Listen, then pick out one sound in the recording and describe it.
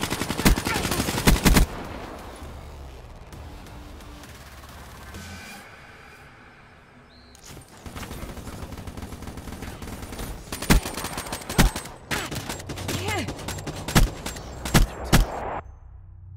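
Gunshots from a rifle fire in sharp bursts.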